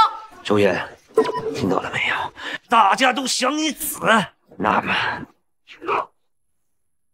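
A middle-aged man speaks threateningly, close up.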